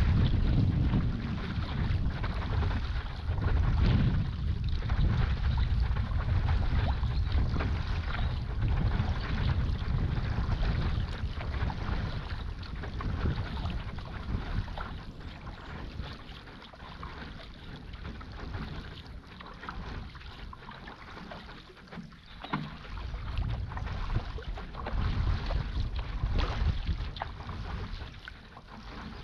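Water churns and splashes in a boat's wake.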